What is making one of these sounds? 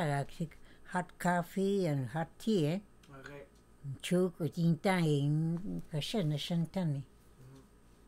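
An elderly woman speaks slowly and expressively close by.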